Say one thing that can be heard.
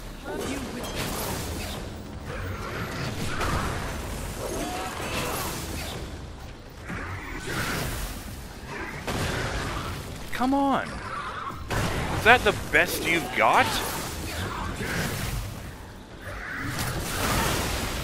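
Magical energy crackles and whooshes.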